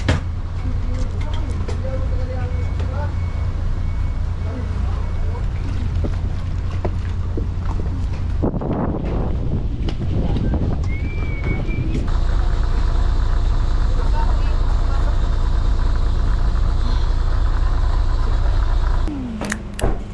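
A boat engine rumbles steadily nearby.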